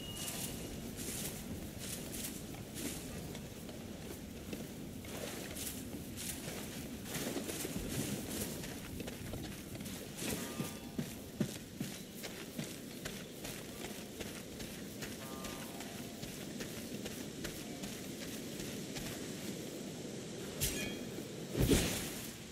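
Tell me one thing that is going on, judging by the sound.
Footsteps crunch quickly over stone and gravel.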